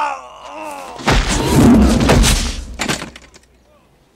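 A body crashes heavily to the ground.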